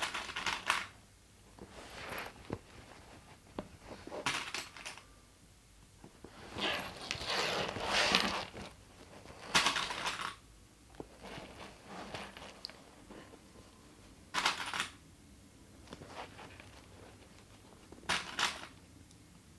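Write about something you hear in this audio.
Plastic clips rattle in a container.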